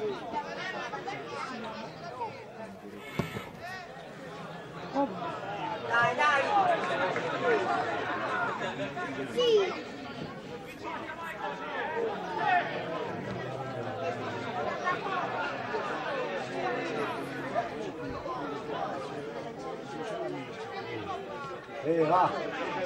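Spectators chatter and shout outdoors.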